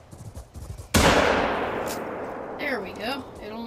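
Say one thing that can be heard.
A rifle shot cracks loudly and echoes away across open country.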